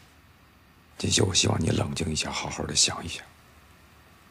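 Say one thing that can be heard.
A woman speaks calmly and firmly nearby.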